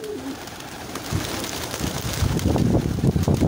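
Pigeon wings flap loudly as birds take off.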